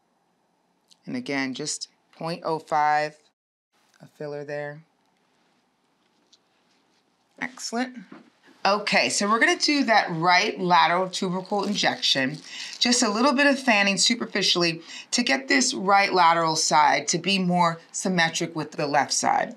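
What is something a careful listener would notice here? A woman speaks calmly and clearly close to a microphone.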